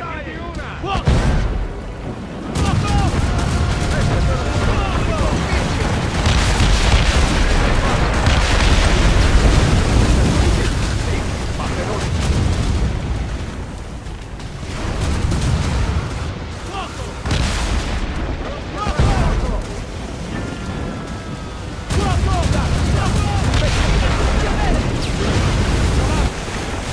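Cannons fire in loud, deep booming blasts.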